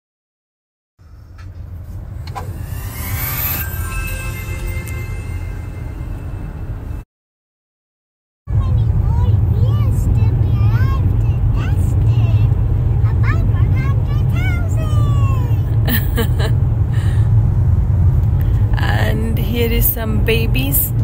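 A car's interior hums with a low road rumble.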